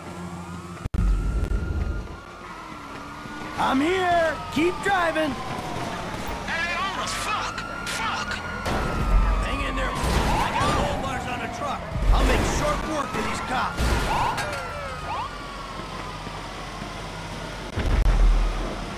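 Police sirens wail and rise and fall.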